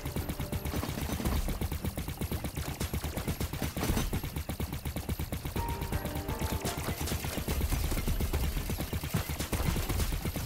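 Explosions burst with heavy booms.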